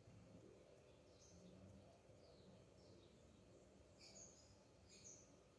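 Hands rub together, brushing off bits of dough.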